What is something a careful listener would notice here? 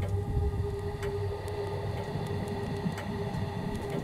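A metal candlestick clinks as it is lifted.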